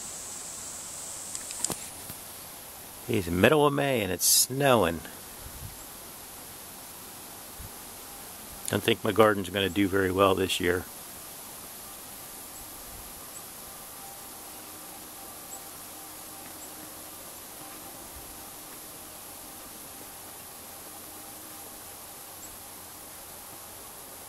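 Hail and rain patter steadily outdoors.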